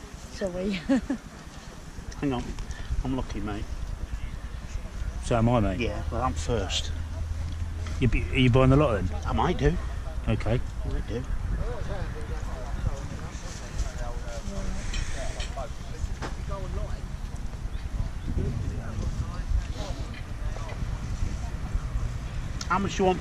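Wind blows against the microphone outdoors.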